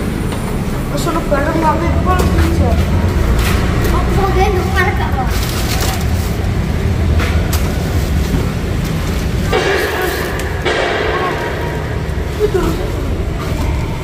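Young boys talk with animation nearby.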